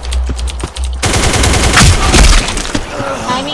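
Rapid gunshots ring out indoors.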